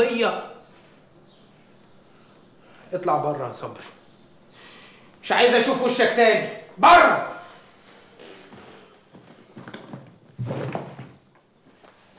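A man speaks tensely and close by.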